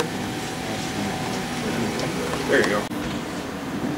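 A small model train rumbles and clicks along its track.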